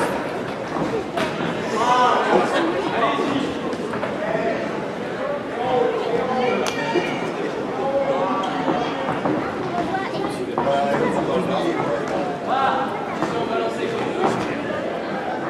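Gloved punches thud on fighters.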